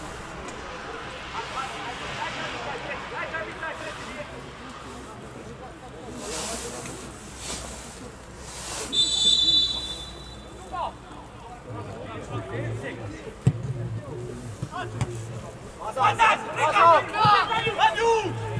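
Players shout to each other across an open outdoor field.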